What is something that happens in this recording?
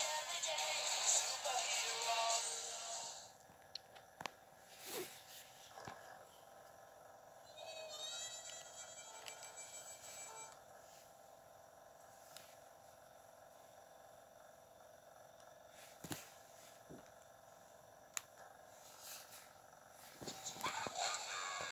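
Music plays through a small, tinny speaker, loud at first, then quieter and on and off.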